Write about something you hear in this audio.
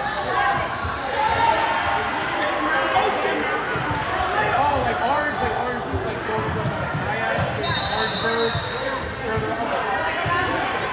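A crowd of spectators chatters in a large echoing hall.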